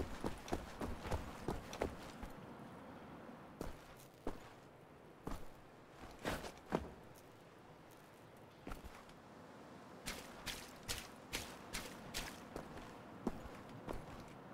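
Quick footsteps tap on a hard stone floor.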